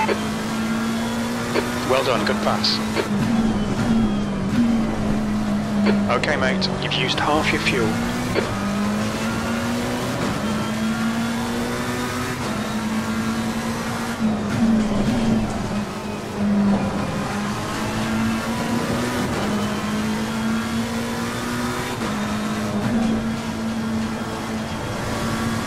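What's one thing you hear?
A racing car engine drones steadily, its pitch climbing and dropping with each gear change.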